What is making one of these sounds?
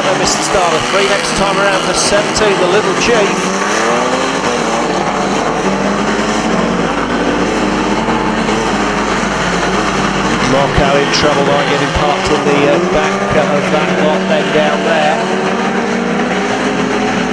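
Car engines roar and rev loudly.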